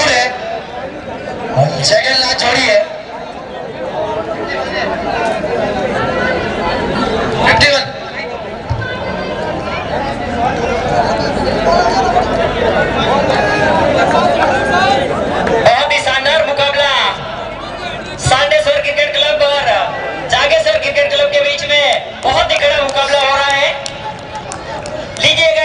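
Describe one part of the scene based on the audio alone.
Young men call out to each other outdoors.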